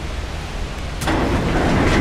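A button clicks.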